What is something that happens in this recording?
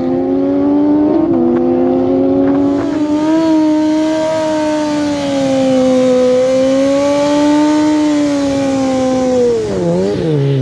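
A motorcycle engine roars loudly at high revs.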